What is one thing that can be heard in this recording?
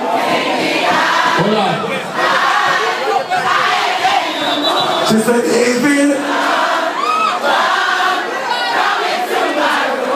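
A man raps into a microphone through loud speakers in a large hall.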